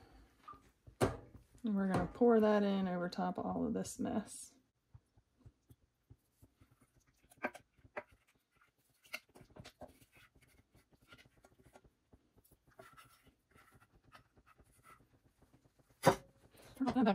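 A metal pot clinks against a pan.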